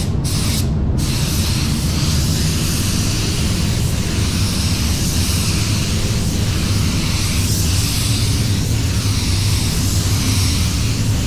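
A spray gun hisses steadily as it sprays paint.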